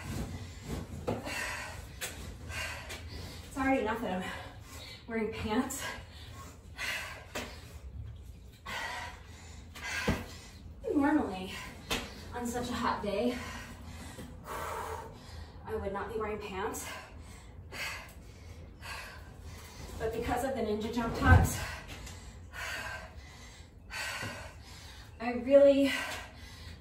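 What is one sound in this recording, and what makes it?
Sneakers thump and shuffle on a concrete floor.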